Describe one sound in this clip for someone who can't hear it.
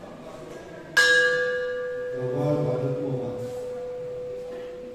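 A bell is struck once and rings on, slowly fading.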